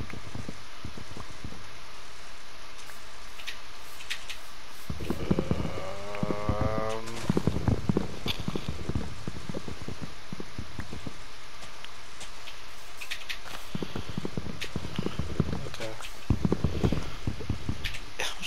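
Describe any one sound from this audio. An axe chops into wood with repeated dull knocks.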